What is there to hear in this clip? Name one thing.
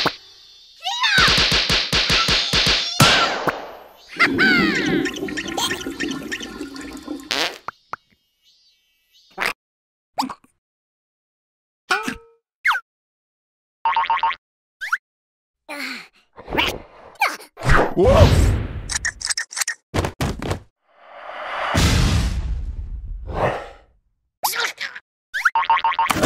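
Small cartoon creatures babble and squeal in high, squeaky voices.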